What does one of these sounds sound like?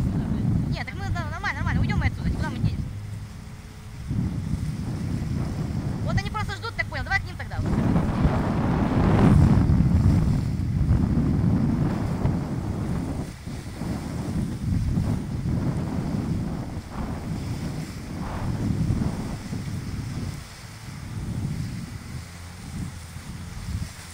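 River rapids rush and churn around a drifting inflatable boat.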